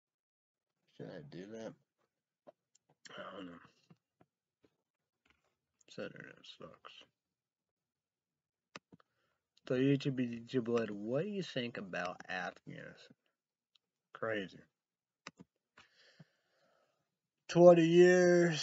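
A young man talks calmly and close up, with pauses between phrases.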